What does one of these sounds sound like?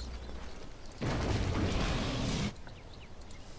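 A whooshing burst of magic sounds as a hero teleports.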